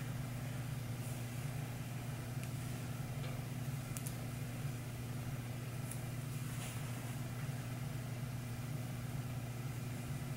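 Hands rustle softly through hair.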